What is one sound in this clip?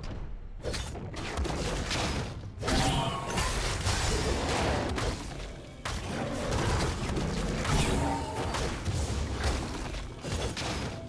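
Blows and blasts thud in a video game fight.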